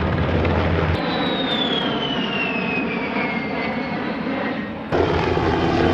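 A jet engine whines with a falling pitch as an aircraft passes.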